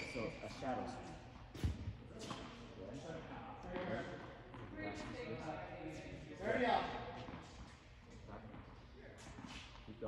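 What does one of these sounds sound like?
A man speaks calmly and instructively nearby, in a large echoing hall.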